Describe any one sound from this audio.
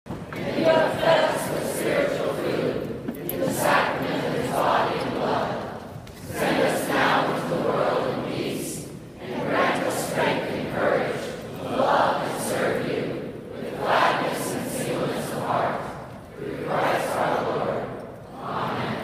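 A large crowd sings together in a big echoing hall.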